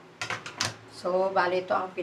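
A woman speaks close by, with animation.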